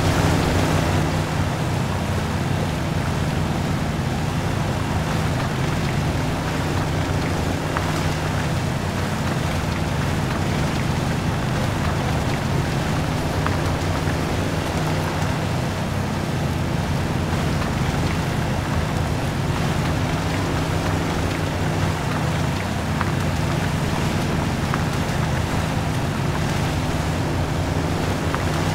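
An off-road engine hums steadily at low revs.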